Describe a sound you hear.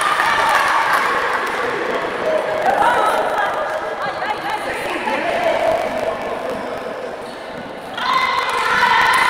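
A crowd of spectators cheers and chants loudly in a large echoing hall.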